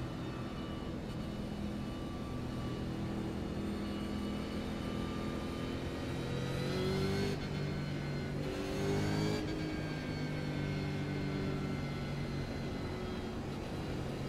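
A race car engine roars steadily, rising and falling in pitch as it shifts gears.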